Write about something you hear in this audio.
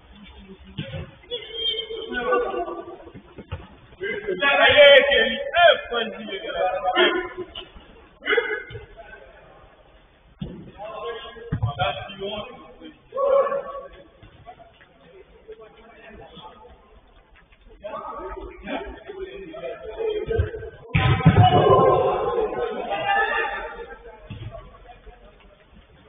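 Young men shout to one another from a distance.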